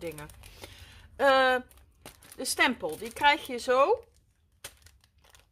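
Hands rustle and handle stiff sheets of paper and plastic.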